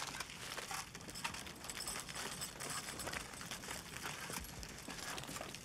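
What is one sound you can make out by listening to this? Boots crunch on rubble as a soldier runs.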